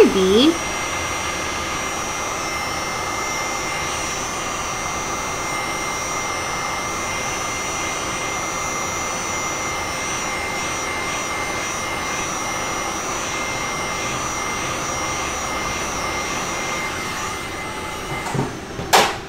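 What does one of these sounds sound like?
A heat gun blows with a steady whooshing hum.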